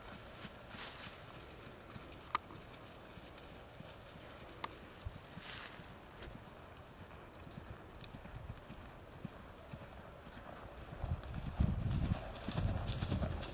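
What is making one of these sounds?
A horse's hooves thud softly on grass at a canter, growing louder as it comes close.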